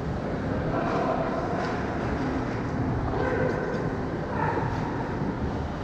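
Players shout to each other across the rink.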